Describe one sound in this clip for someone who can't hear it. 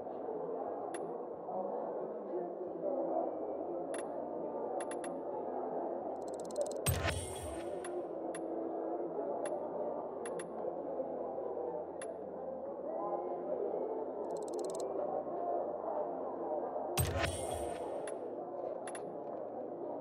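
Short electronic ticks sound as a game menu selection moves.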